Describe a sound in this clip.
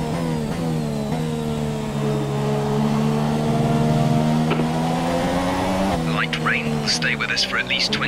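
A racing car engine whines steadily, shifting gears now and then.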